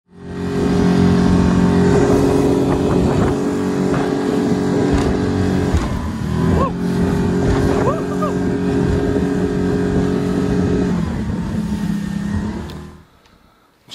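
A boat engine roars steadily at speed.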